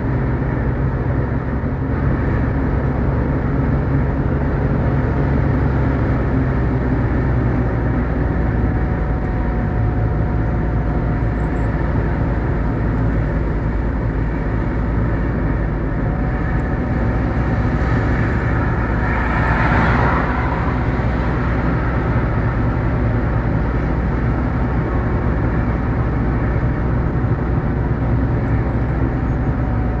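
Tyres roll and rumble on the road.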